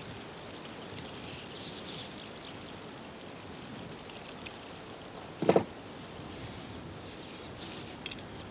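A knife whittles and scrapes wood.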